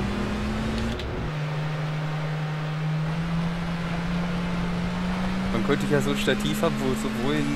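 A car engine hums steadily at high revs.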